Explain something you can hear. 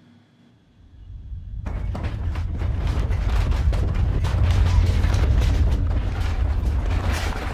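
A microphone rustles and thumps as it is handled.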